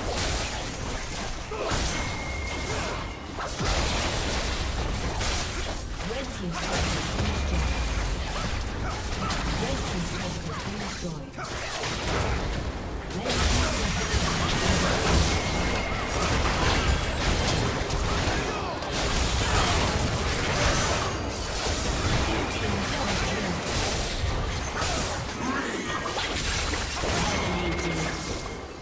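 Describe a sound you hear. Video game spells crackle and whoosh with booming hits throughout a fight.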